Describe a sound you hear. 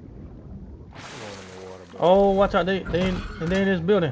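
Water splashes and gurgles as a swimmer dives under.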